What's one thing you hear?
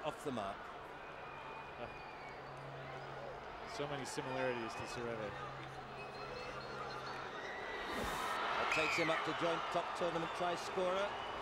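A crowd cheers loudly in a large stadium.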